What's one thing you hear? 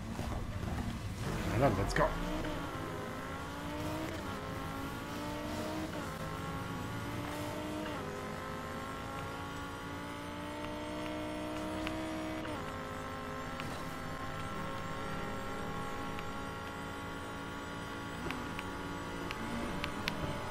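A racing car engine roars, revving up again and again through quick gear changes.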